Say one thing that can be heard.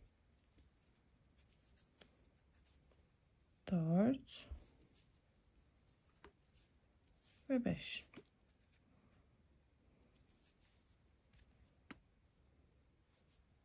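A crochet hook softly clicks and rustles through yarn.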